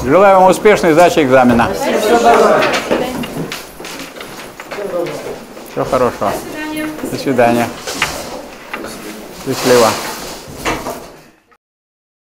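Young men and women chatter nearby in a room.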